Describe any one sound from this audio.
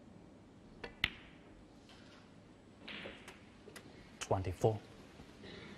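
Snooker balls knock together with crisp clicks.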